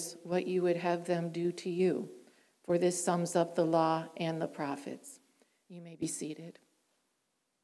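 A woman reads aloud calmly through a microphone.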